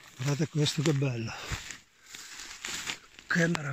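Dry leaves and grass rustle underfoot.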